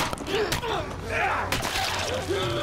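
A heavy blow lands with a dull thud.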